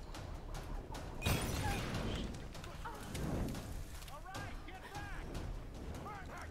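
Gunshots crack sharply in quick bursts.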